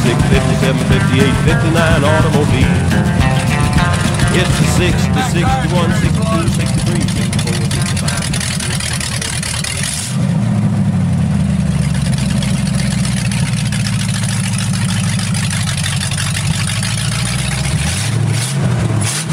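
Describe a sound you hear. An old car engine rumbles loudly and revs as it drives.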